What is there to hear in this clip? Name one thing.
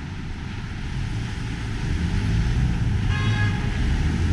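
A car drives past close by on the street.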